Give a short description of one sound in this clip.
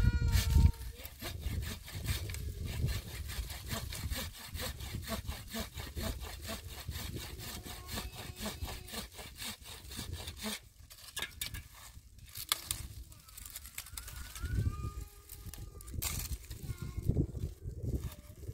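A small hand tool scrapes and knocks against stony ground.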